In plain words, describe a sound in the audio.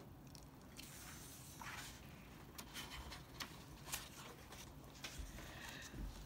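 Paper pages rustle and flap as a book's page is turned by hand.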